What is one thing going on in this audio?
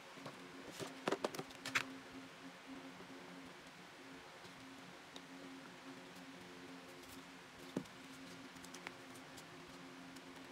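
Rolls of tape clack as they are placed into a plastic box.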